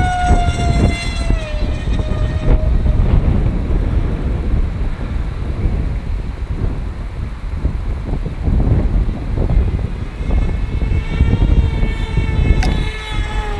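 Wind rumbles and buffets strongly outdoors.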